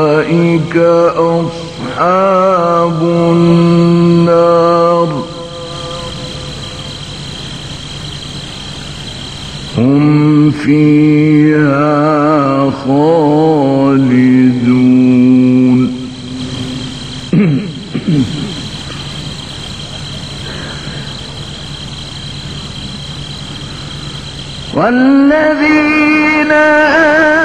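An elderly man chants in long, wavering melodic phrases through a microphone, with pauses between them.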